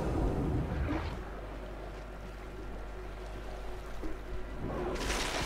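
Strong wind blows and gusts outdoors.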